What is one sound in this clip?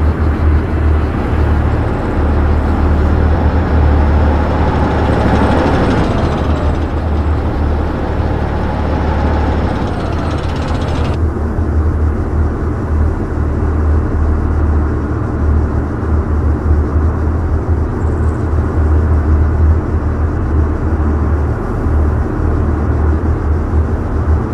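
Tank tracks clatter and grind over gravel.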